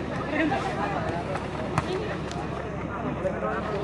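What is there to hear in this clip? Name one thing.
A football is kicked.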